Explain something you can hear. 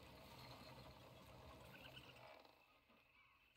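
A horse-drawn wagon rumbles over rough ground.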